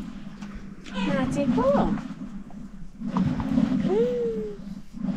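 A small child babbles and squeals nearby.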